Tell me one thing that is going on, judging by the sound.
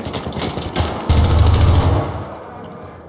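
A rifle fires short bursts of gunshots.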